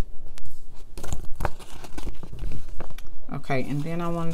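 A sticker sheet crackles as it is flexed.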